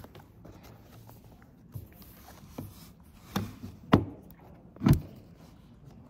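Objects knock lightly on a wooden table.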